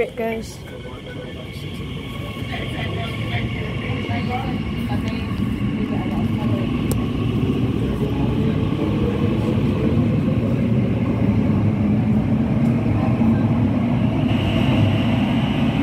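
Train wheels rumble louder and louder on the track.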